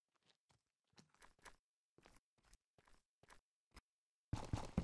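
Footsteps tap on stone.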